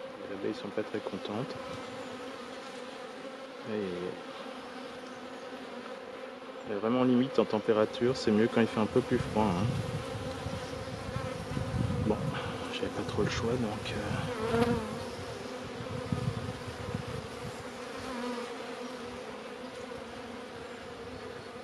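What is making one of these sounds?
Bees hum softly and steadily.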